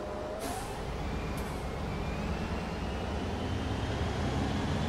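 A bus engine grows louder as the bus pulls away.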